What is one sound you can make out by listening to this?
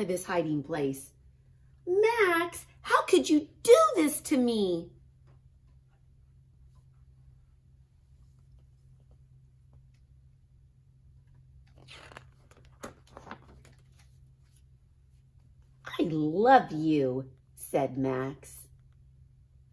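A woman reads aloud with expression, close to the microphone.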